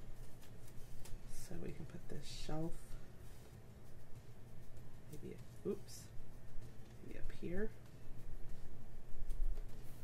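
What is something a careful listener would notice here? Paper rustles and crinkles softly as hands handle a page.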